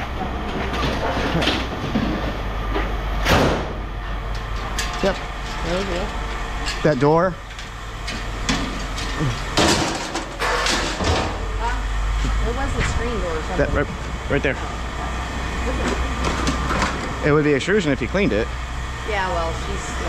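Scrap metal clanks and rattles as it is tossed into a bin.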